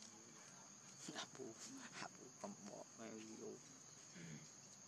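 A monkey gives short, sharp calls close by.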